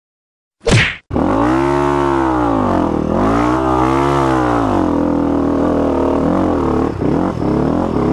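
A dirt bike engine roars and revs as it rides.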